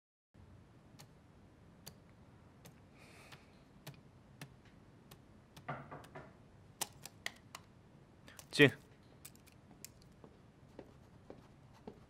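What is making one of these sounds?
Keys on a computer keyboard click and tap sharply now and then.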